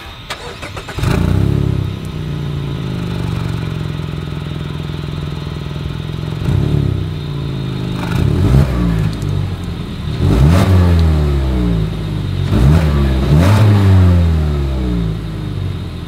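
A car engine starts up and idles with a deep rumble from the exhaust.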